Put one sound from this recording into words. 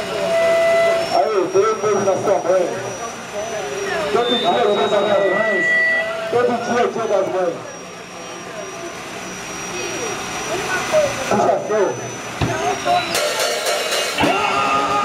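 A drum kit is played.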